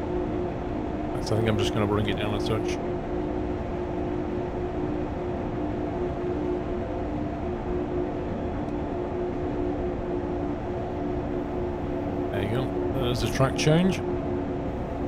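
An electric train hums steadily as it rolls along.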